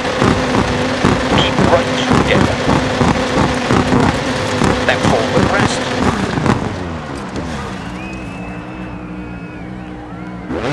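A rally car engine roars loudly, then drops to a low idle.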